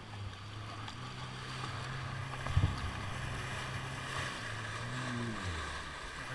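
Water splashes and rushes against a hull.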